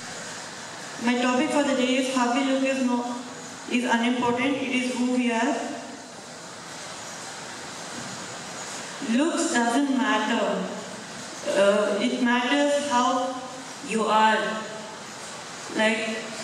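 A boy speaks into a microphone, heard through loudspeakers in a large echoing hall.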